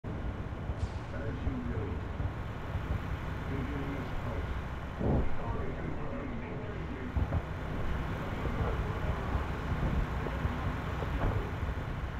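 A deep engine rumbles steadily.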